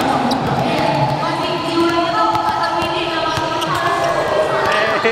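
Basketballs bounce on a hard court floor.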